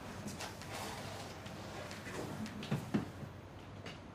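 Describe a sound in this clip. A bed rustles as a woman sits down on it.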